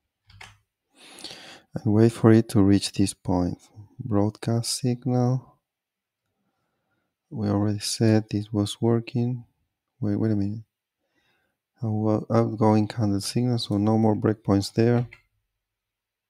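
A man talks calmly into a microphone, close by.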